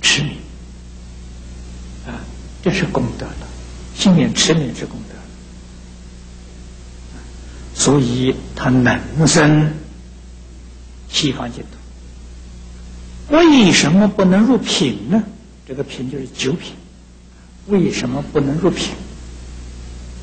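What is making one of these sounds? An elderly man speaks calmly and slowly through a microphone, with pauses between phrases.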